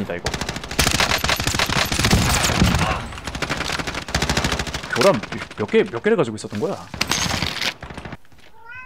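Rapid bursts of automatic gunfire ring out close by.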